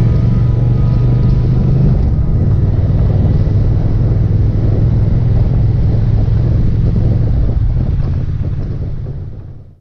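A motorcycle engine rumbles steadily up close as it rides along.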